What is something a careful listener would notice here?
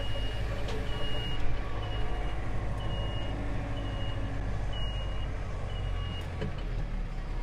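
A reversing alarm beeps steadily while the tractor backs up.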